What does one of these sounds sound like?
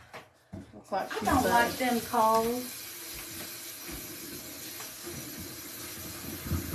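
Water runs from a tap and splashes into a sink.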